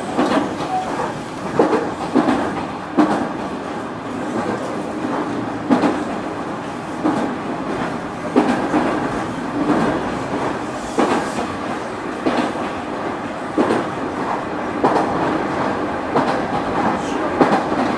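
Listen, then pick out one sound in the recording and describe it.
A stopped train hums steadily.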